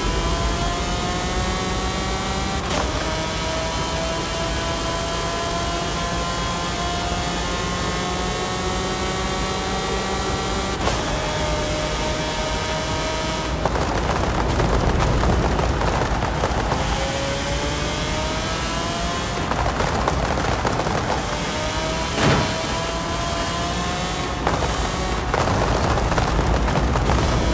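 A racing car engine roars at high revs, climbing in pitch and dropping briefly with each gear change.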